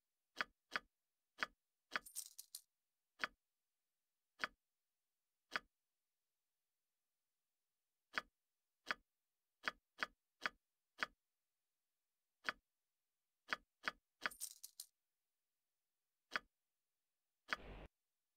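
Short, sharp interface clicks sound again and again as menu items are selected.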